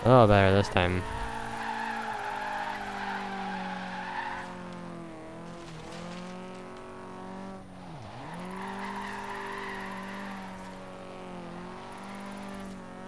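A car engine revs high and drones, rising and falling in pitch.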